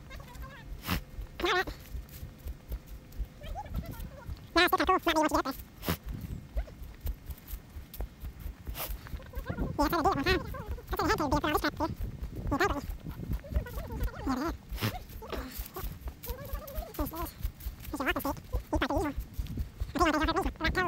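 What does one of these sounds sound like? Footsteps crunch through dry leaves.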